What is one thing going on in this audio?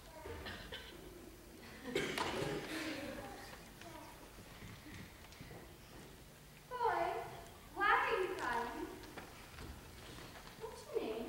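A child speaks and calls out expressively in a large echoing hall.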